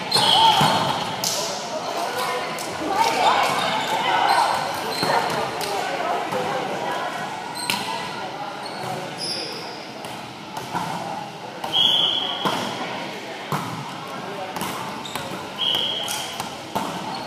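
Many young people chatter and call out in a large echoing gym.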